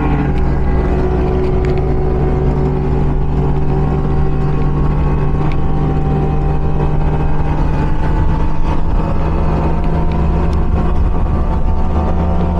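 A boat engine drones steadily and loudly up close.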